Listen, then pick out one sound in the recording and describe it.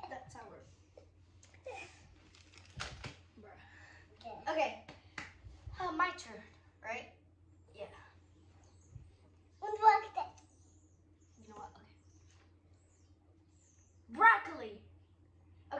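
A small boy laughs close by.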